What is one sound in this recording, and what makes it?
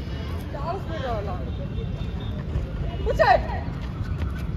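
A young man calls out from a short distance.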